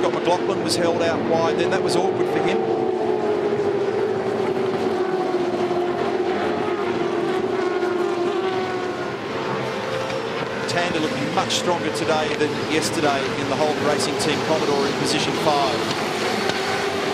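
Racing car engines roar loudly as a pack of cars speeds past, rising and falling in pitch.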